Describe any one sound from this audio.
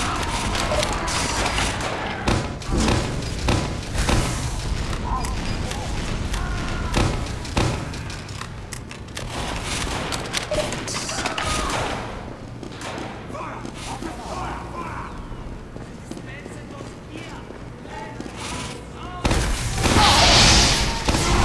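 A grenade launcher fires with heavy thumps.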